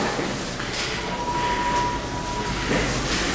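An elevator chime rings with a steady tone.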